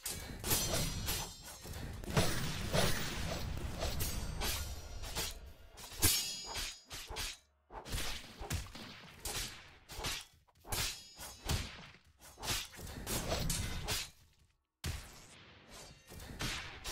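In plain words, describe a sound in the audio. Sword slashes whoosh and clang again and again.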